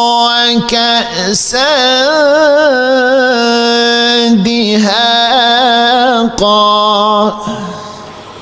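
A middle-aged man chants in a long, wavering, melodic voice through a microphone, with echo in a large hall.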